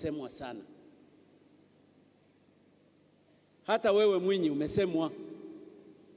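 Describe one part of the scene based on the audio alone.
An elderly man speaks slowly and forcefully into a microphone, heard through loudspeakers in a large echoing space.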